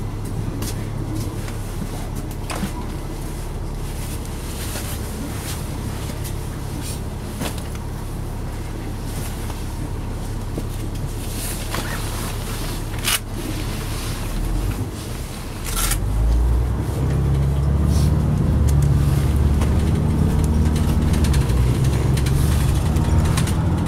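A bus engine hums low and steadily, growing louder as the bus pulls away.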